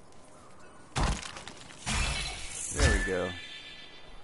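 A loud magical whoosh bursts and fades.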